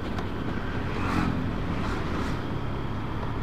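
A motorbike engine buzzes as it passes close by.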